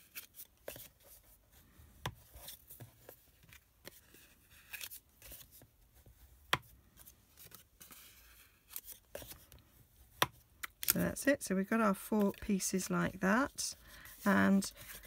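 Stiff card rustles and taps as it is folded and creased by hand.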